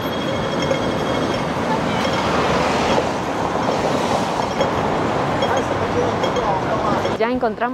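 Heavy city traffic rumbles steadily outdoors.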